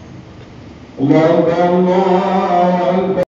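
A man chants loudly through a loudspeaker in an echoing hall.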